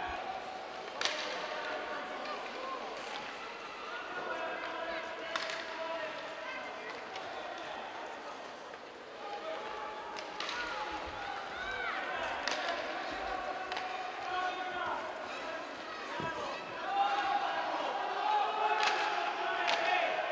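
Hockey sticks knock against a puck with sharp clacks.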